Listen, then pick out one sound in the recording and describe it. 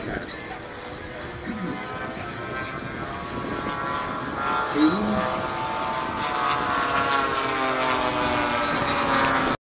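Aircraft engines drone overhead and grow louder.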